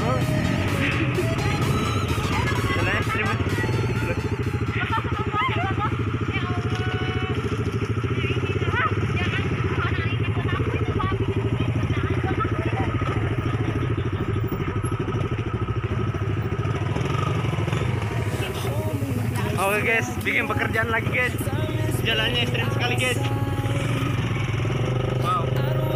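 A motorbike engine idles and revs close by.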